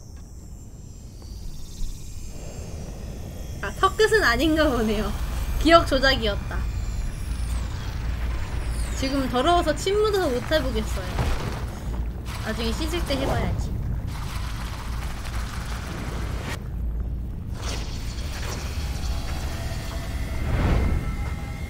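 Magical energy whooshes and swirls with a deep rumble.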